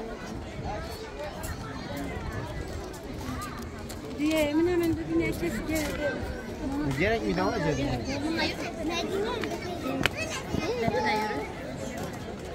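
A crowd of men, women and children chatters outdoors.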